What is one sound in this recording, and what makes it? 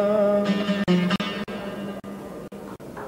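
A man sings close to a microphone.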